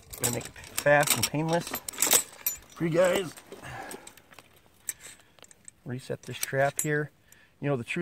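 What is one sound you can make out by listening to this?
A metal trap clanks and rattles.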